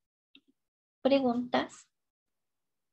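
A middle-aged woman speaks calmly into a microphone, in short bursts with pauses.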